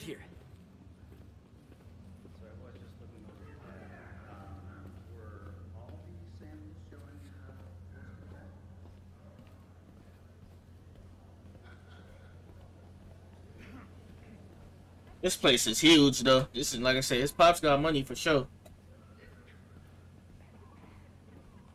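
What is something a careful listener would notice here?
Footsteps tap on a wooden floor.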